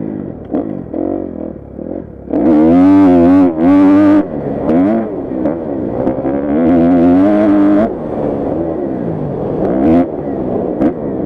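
A motorcycle engine revs hard and drops back again and again, close by.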